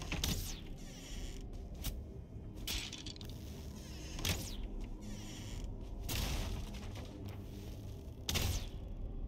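A blade swings and strikes with sharp, hissing impacts every couple of seconds.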